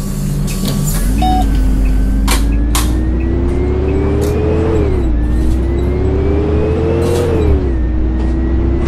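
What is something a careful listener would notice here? A bus engine revs up with rising pitch, dropping briefly at each gear change.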